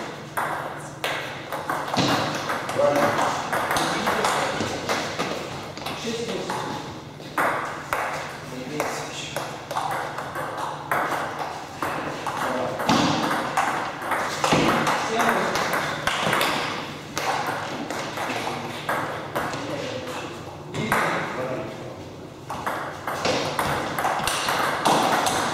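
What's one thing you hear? A table tennis ball clicks back and forth off paddles and a table in a quick rally.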